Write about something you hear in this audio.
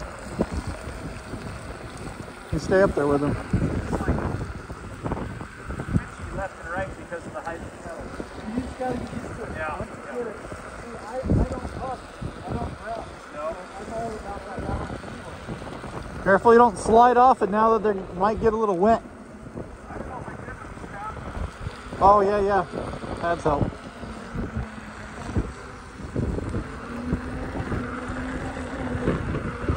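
Electric wheels whir over asphalt.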